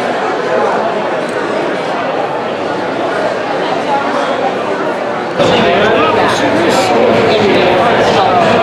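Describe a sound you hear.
A crowd of men and women chatter all around in a large, echoing hall.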